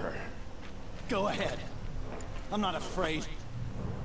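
A man answers calmly in a strained voice.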